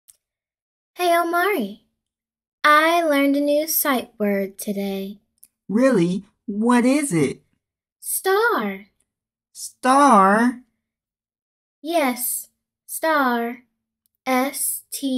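A child-like voice speaks with animation, close to a microphone.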